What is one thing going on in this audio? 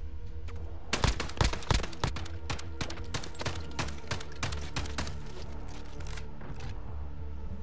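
Rapid gunfire crackles in sharp bursts.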